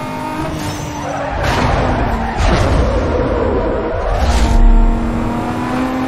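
A nitrous boost whooshes on a racing car.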